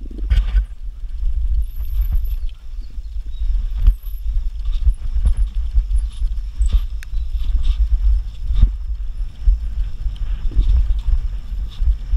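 Wind rumbles loudly across a microphone outdoors.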